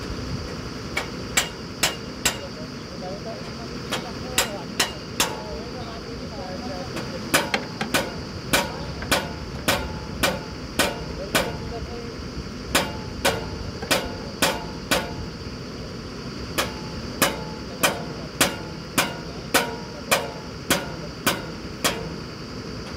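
Sharp metallic knocks ring out at a steady rhythm.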